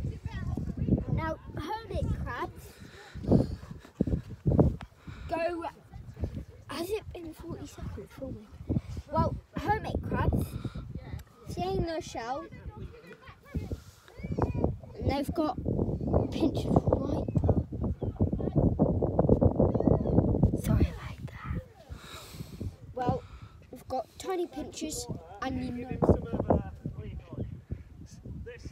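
A young boy talks with animation close to a clip-on microphone.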